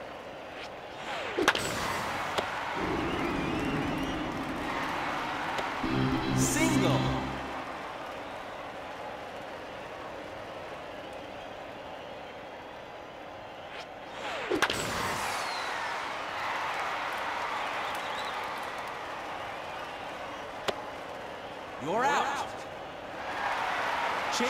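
A crowd cheers and murmurs in a large stadium.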